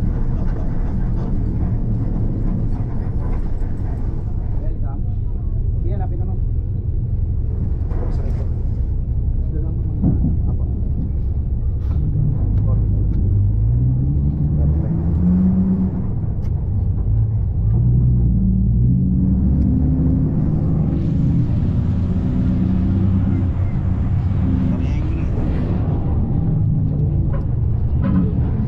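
A bus engine rumbles steadily from inside.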